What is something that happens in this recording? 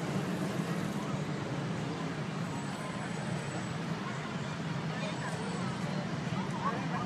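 A crowd of protesters chatters and murmurs outdoors.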